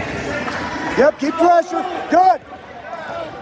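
Spectators shout and cheer loudly.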